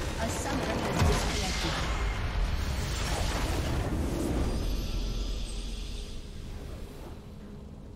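A large game explosion booms and rumbles away.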